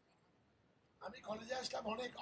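An elderly man speaks loudly into a microphone over loudspeakers.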